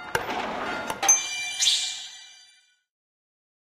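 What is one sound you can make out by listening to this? A bright game chime rings out and slowly fades.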